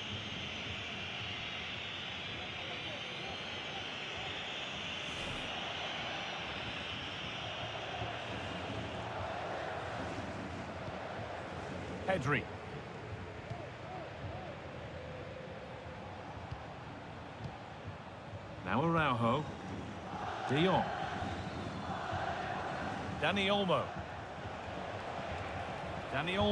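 A large crowd roars and cheers steadily in a stadium.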